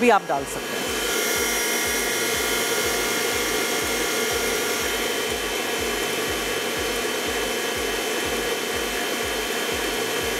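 A stand mixer whirs steadily as it beats dough.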